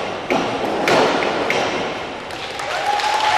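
A diver splashes into the water.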